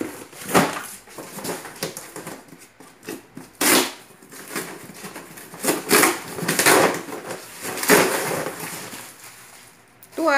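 Cardboard rustles and tape tears as a box is opened.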